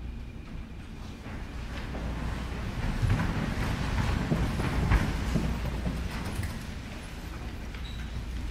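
A large audience shuffles and murmurs in an echoing hall.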